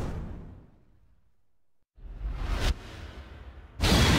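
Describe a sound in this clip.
A bright flash bursts with a whoosh.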